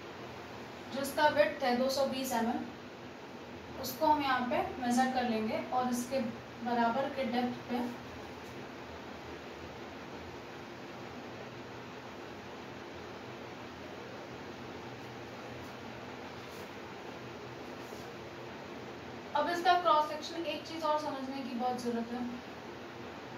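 A young woman speaks calmly and clearly, close by, in short bursts with long pauses.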